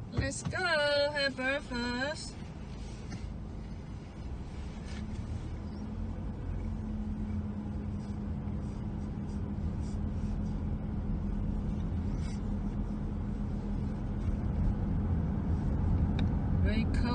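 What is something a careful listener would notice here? A car engine hums steadily from inside as the car drives along.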